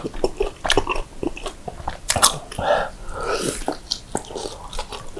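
A man chews and smacks his lips loudly close to a microphone.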